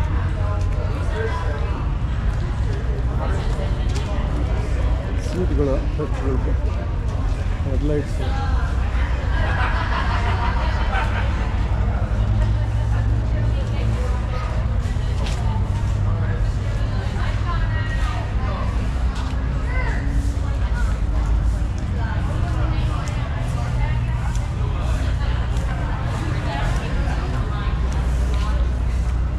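Men and women chatter quietly in the background, in a large echoing space.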